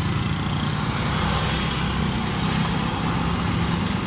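A motor scooter passes by.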